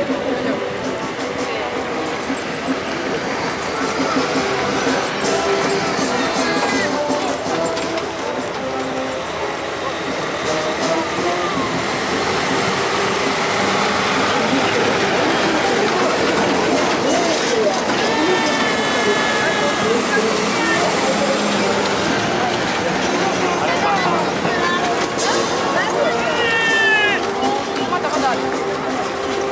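Heavy truck engines rumble steadily as a column of vehicles rolls past close by.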